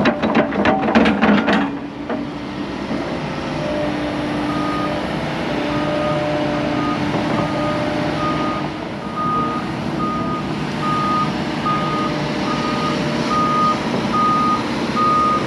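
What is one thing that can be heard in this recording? A diesel excavator engine rumbles and whines steadily.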